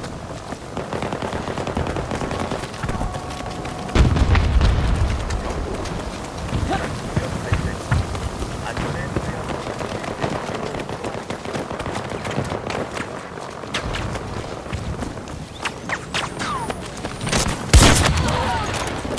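A strong wind roars steadily outdoors.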